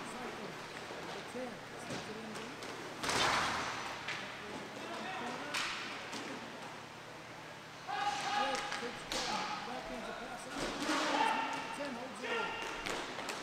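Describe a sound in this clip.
Hockey sticks clack against a puck in an echoing indoor rink.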